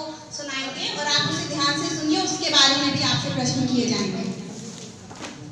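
A woman speaks with animation into a microphone in a room with some echo.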